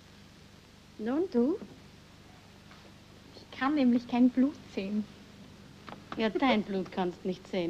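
A young woman talks cheerfully.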